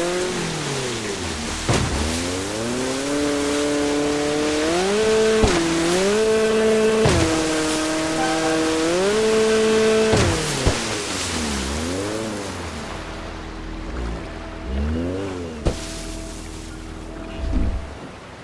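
A jet ski engine revs up and down.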